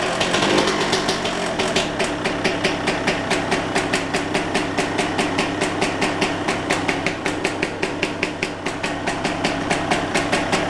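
Exhaust pops and sputters rhythmically from a motorcycle's tailpipe.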